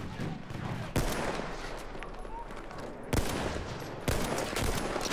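A rifle fires single sharp shots.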